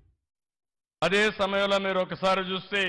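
A middle-aged man speaks loudly into a microphone.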